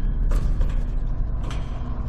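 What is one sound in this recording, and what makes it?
A metal grate clanks underfoot.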